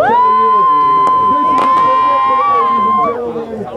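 A firework bursts with a bang.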